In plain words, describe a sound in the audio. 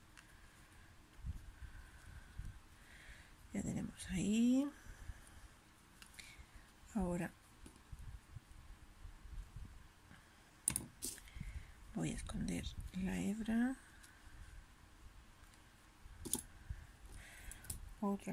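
Hands rub and rustle softly against a knitted toy.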